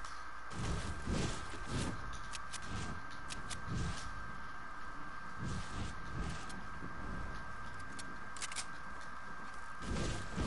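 Footsteps thud steadily on grass.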